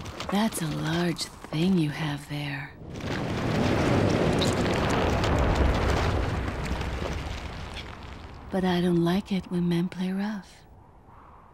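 A young woman speaks calmly and coolly, close by.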